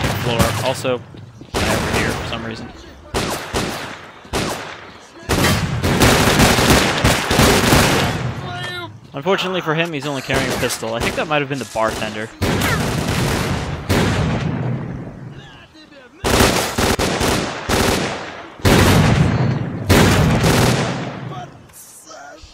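Gunshots fire in loud bursts with ringing echoes.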